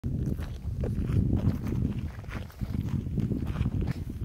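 Footsteps scuff along a road.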